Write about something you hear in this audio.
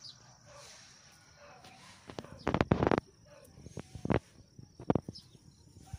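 A goat tears and chews grass close by.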